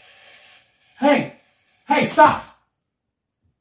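A man shouts out loudly nearby.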